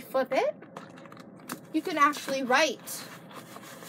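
A young girl speaks with animation close by.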